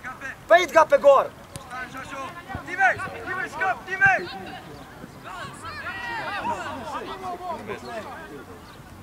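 Young boys shout and call out to each other outdoors.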